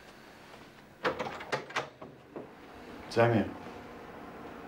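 A door handle clicks and a door swings open.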